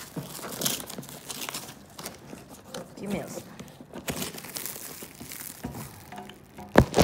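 Plastic wrap crinkles and rustles as hands tear it open.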